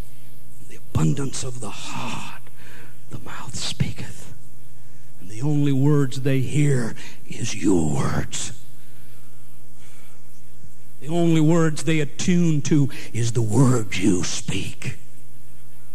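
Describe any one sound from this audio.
A middle-aged man speaks slowly and earnestly into a microphone, with pauses.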